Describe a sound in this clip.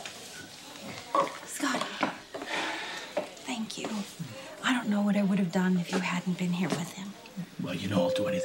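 A woman speaks earnestly up close.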